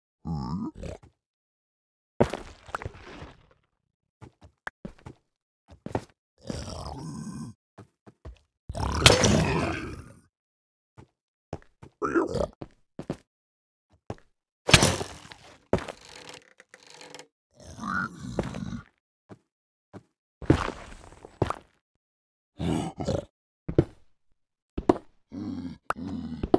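A pickaxe chips and breaks blocks in short bursts.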